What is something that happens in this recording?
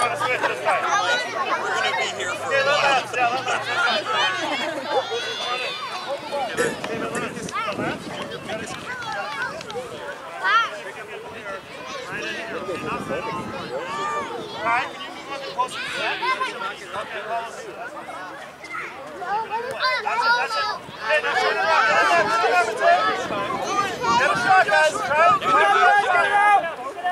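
Young children shout and chatter excitedly outdoors.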